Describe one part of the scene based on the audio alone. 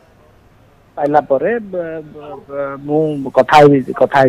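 A man speaks over a phone line.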